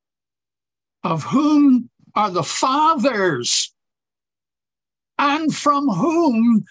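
An elderly man reads aloud calmly, heard through an online call.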